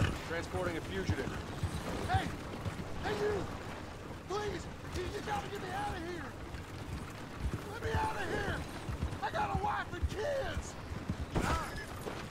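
A wooden wagon rattles along a dirt track.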